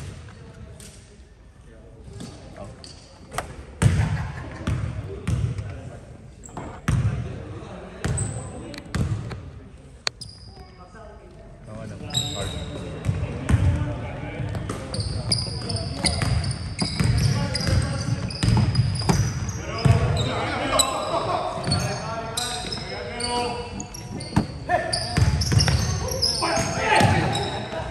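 A basketball bounces on a hardwood court in a large echoing gym.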